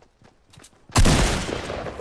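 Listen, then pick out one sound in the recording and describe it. A loud bang bursts out on impact.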